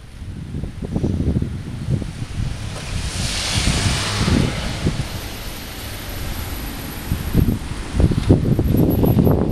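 Wind rumbles and buffets in gusts outdoors.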